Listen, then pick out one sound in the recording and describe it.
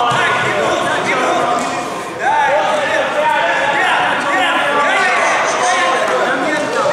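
A crowd of spectators chatters and calls out in an echoing hall.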